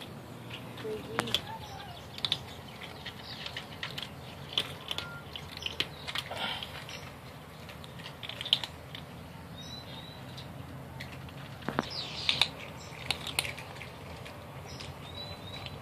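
Kittens crunch and chew dry food up close.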